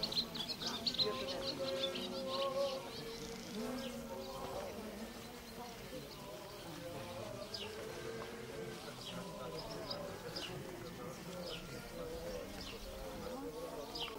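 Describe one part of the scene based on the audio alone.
A crowd of women sings together outdoors.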